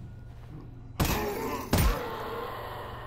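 A pistol fires two sharp shots.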